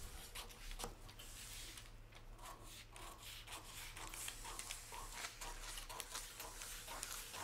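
Scissors snip and slice through paper with crisp repeated cuts.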